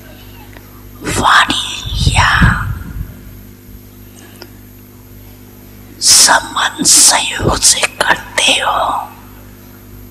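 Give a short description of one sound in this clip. An elderly woman speaks slowly and calmly into a microphone, with pauses.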